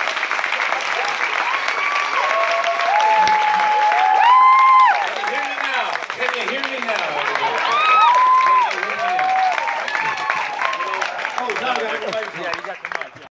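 An audience cheers and shouts loudly close by in a large room.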